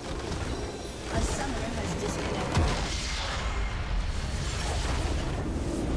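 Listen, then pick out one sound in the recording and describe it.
A large crystal structure in a video game explodes and crumbles with a loud crash.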